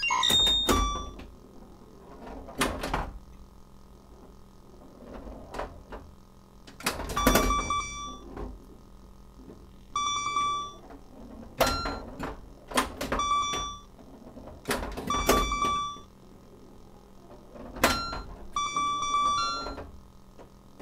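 A pinball machine rings bright chime tunes in short bursts.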